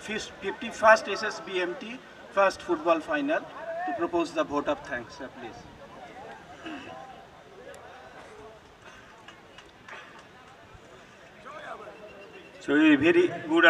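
A man speaks through a microphone and loudspeakers outdoors.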